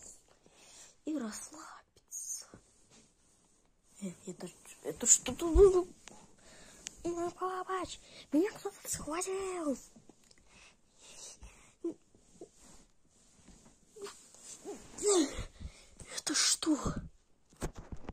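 A boy talks animatedly close up.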